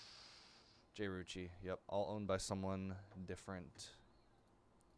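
A man speaks with animation into a microphone.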